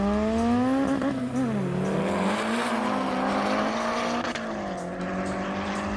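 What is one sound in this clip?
A car engine shifts gears, its pitch dropping and then climbing again.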